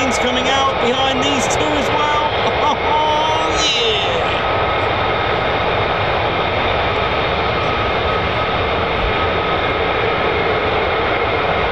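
Jet engines roar and whine steadily nearby.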